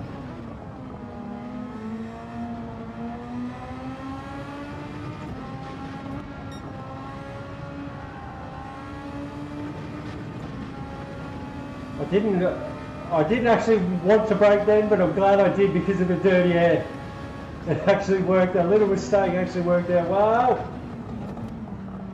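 A racing car engine whines and climbs in pitch as it speeds up through the gears.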